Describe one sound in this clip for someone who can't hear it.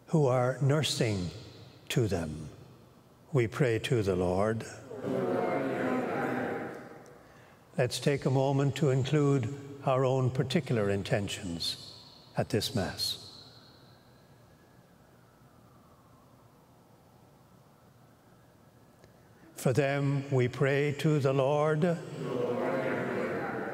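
An elderly man speaks calmly into a microphone, pausing now and then.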